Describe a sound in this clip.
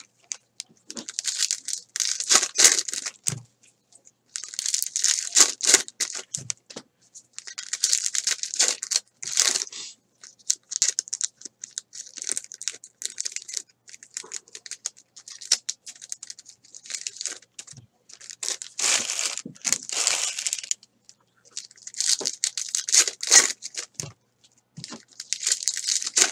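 Foil card wrappers crinkle and rustle as hands tear them open.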